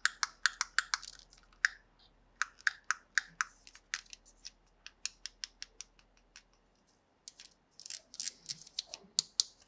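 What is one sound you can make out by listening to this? Small plastic toy pieces click and tap as they are handled.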